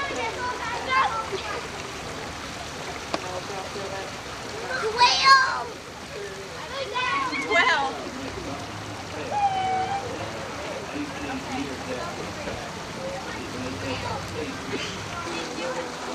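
Women laugh and chatter nearby outdoors.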